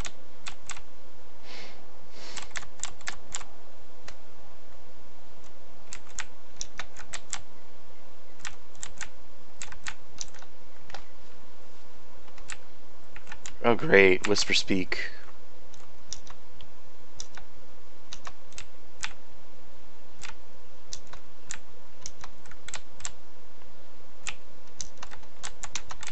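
Quick footsteps tap steadily on hard ground.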